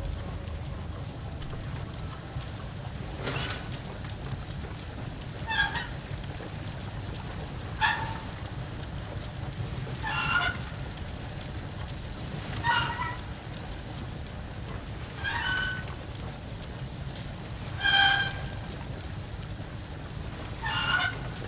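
Footsteps thud slowly on a creaking wooden floor.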